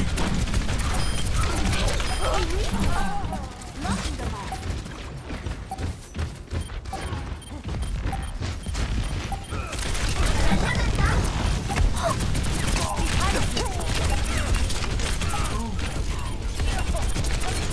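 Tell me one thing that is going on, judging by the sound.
Rapid gunfire rattles from a game.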